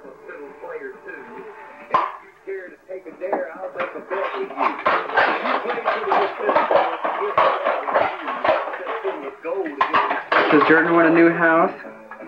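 A small child babbles and chatters nearby.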